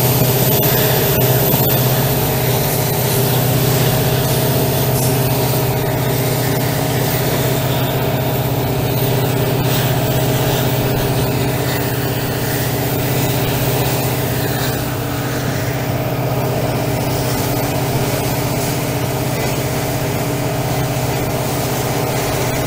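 A diesel locomotive engine drones loudly and steadily close by.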